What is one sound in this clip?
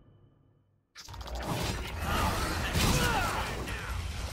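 A monster roars and stomps.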